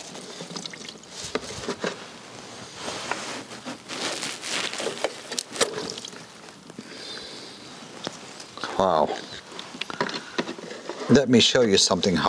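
A metal filter canister scrapes and creaks as hands twist it off.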